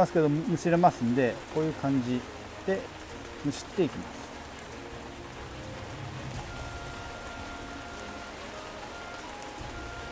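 Leaves rustle softly as a plant stem is stripped.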